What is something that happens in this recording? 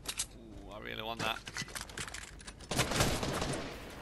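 A pickaxe strikes with a thud.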